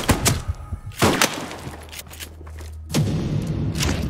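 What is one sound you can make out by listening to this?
A body falls and hits the ground with a heavy thud.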